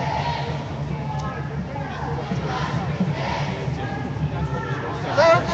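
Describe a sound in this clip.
A crowd of men and women talks and chatters loudly outdoors.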